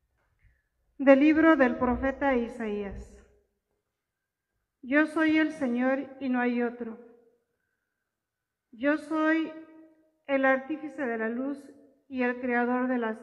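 An elderly woman reads out calmly through a microphone in an echoing hall.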